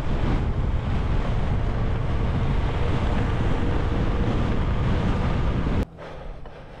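Wind rushes and buffets loudly against a microphone.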